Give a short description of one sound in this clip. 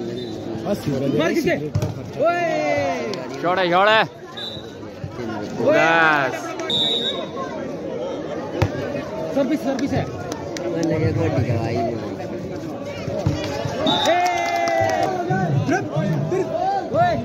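Young men shout loudly to each other nearby.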